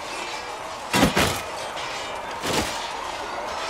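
A sword swishes through the air.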